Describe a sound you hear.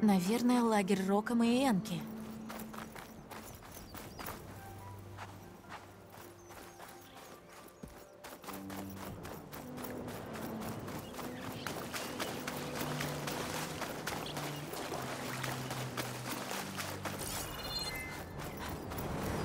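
Footsteps run quickly across soft sand.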